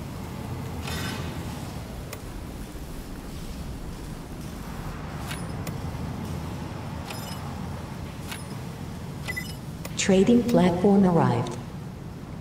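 Soft interface clicks sound as menus open and close.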